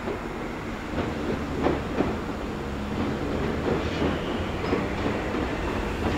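Train wheels clatter over rail joints and switches.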